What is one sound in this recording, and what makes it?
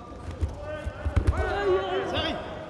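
A judoka is thrown and lands with a thud on a padded mat.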